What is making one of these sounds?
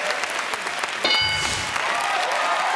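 A game show chime rings out.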